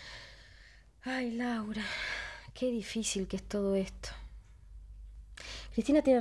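A young woman talks calmly and plainly nearby.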